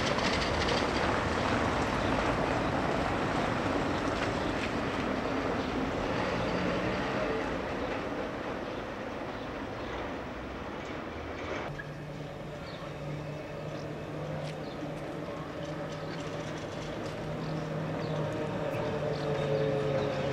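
A tram rumbles along on its rails.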